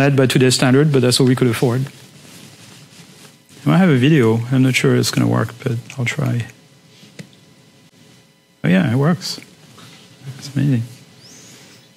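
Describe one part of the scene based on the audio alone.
A man lectures through a microphone, speaking calmly in bursts with pauses.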